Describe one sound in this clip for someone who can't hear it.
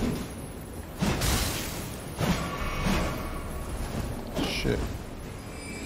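A spear strikes and clangs in heavy blows.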